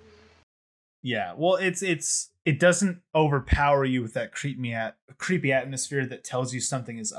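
A young man talks with animation, heard through a computer microphone.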